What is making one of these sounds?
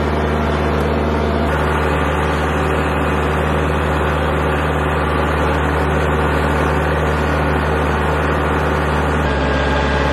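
Tyres crunch over dry leaves and dirt.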